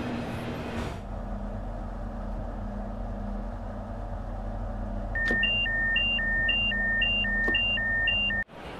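An electric train's motor hums steadily at rest.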